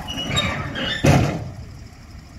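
A heavy metal ramp drops and clanks onto the ground.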